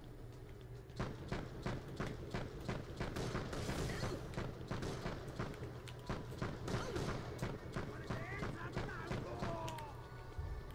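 A game pistol fires a burst of shots.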